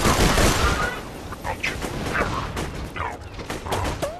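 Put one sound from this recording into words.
A gun reloads with a metallic clack.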